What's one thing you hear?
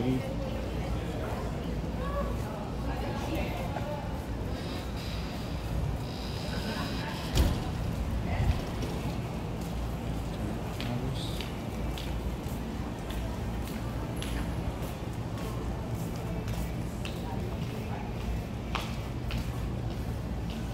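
Footsteps tap on paving nearby.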